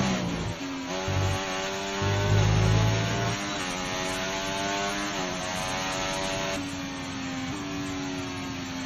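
A racing car engine screams at high revs, rising and dropping as the gears shift.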